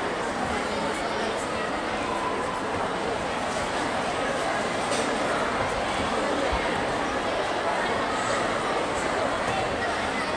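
A large crowd chatters loudly in a big echoing hall.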